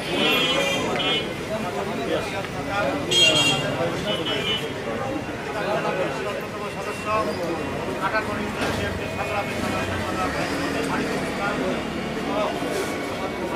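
A man speaks to a crowd through a loudspeaker.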